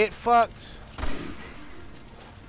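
A rifle shot fires with a deep boom.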